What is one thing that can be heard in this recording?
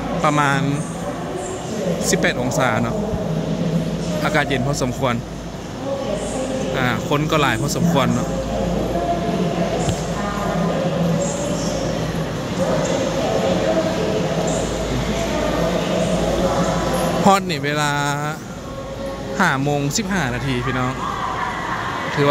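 Suitcase wheels roll over a hard floor.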